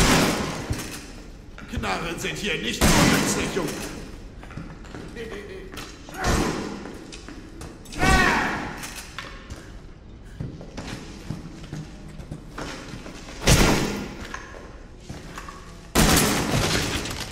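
A shotgun fires several loud blasts that echo briefly.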